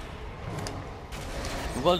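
Metal blades clash and clang in a fight.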